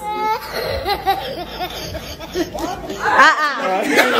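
A young boy laughs loudly nearby.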